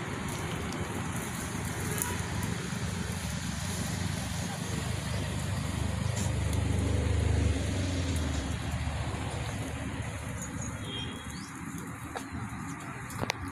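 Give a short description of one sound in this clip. Goats tear and munch leafy plants.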